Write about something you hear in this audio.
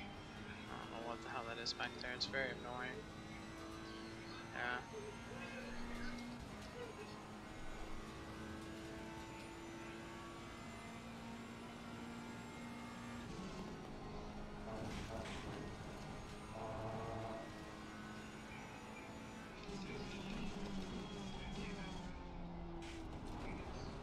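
A racing car engine drones steadily and shifts pitch through the gears.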